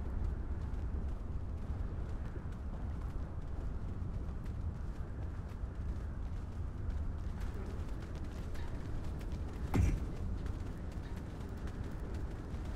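Distant battle rumbles low and steadily.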